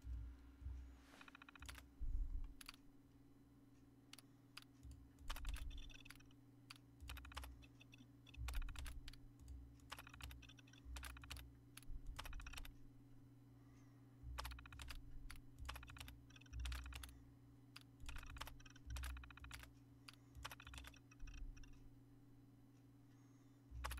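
Keys on a computer terminal click and clatter in short bursts.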